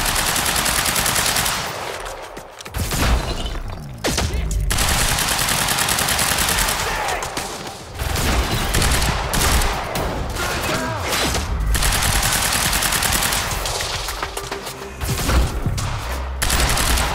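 A rifle fires in rapid bursts of gunshots.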